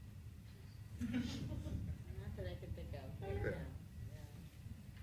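Several people laugh together.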